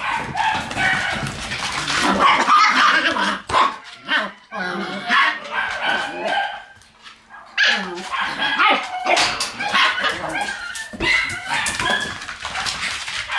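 Puppy paws patter and scrabble on a wooden floor.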